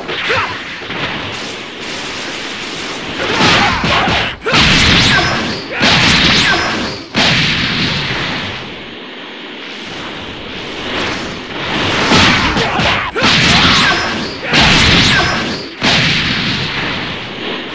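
Energy blasts whoosh and crackle in bursts.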